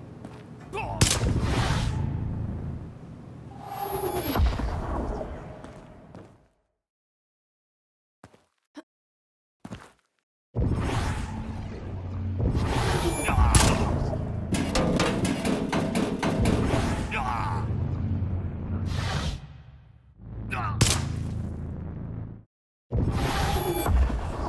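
Magic blasts crackle and whoosh in bursts.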